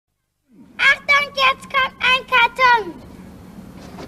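A young girl sings a short, bouncy phrase close by.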